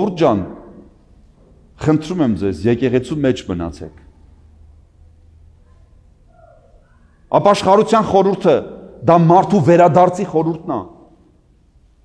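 An elderly man chants in a deep voice, echoing through a large hall.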